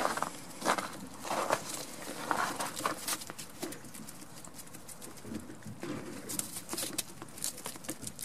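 A goat munches grain on the ground.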